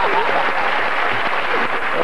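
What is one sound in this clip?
A young man laughs heartily.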